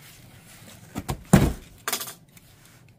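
A cardboard box thumps as it is moved.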